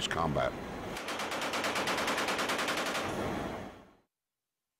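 A machine gun fires a long rapid burst.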